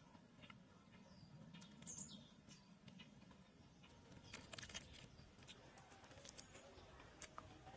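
Roasted chicken meat tears apart in someone's hands.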